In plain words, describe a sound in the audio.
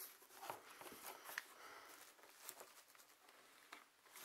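Cardboard packaging scrapes and rustles.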